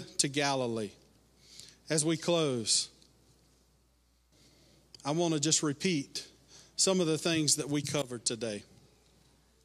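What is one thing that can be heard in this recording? A middle-aged man speaks calmly into a microphone in a large echoing hall.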